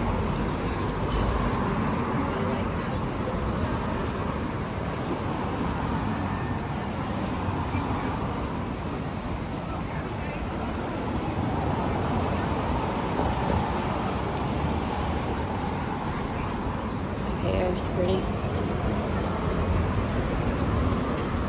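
Cars drive past close by.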